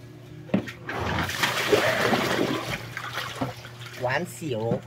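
A plastic tub scrapes and knocks against a concrete floor.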